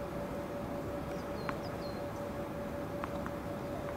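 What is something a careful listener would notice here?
A tennis ball bounces a few times on a hard court.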